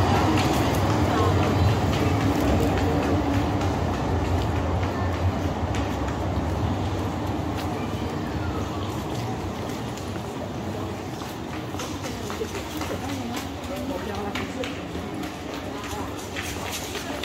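A low hum of distant city traffic fills the air outdoors and slowly fades.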